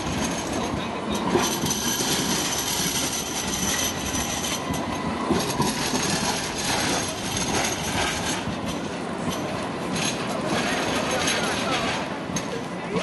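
A tram rumbles past close by.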